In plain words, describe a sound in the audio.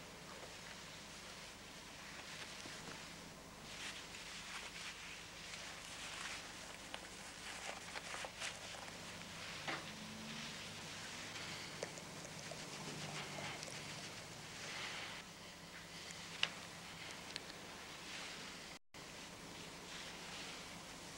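Cloth rustles and crinkles as hands handle it.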